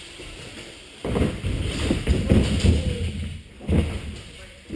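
Bike tyres roll and rumble over a wooden ramp in a large echoing hall.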